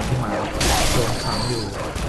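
Flames burst with a roaring whoosh.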